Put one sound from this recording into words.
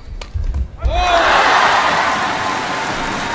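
A large crowd cheers and roars in an echoing hall.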